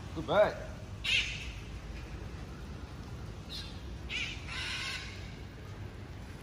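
Birds call overhead.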